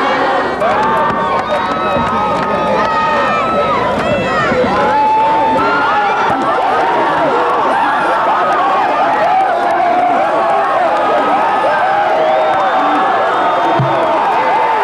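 A crowd of young men cheers and shouts excitedly close by.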